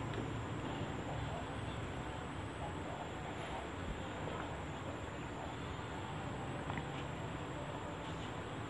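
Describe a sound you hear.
A woman gulps water from a bottle.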